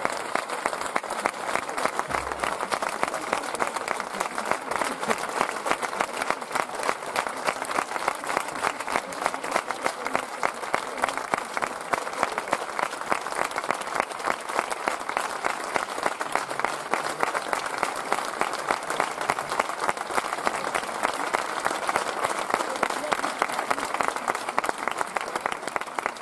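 A large audience applauds steadily in a big echoing hall.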